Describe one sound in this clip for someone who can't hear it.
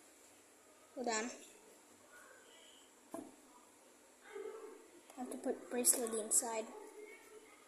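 A plastic case is set down on a table with a clatter.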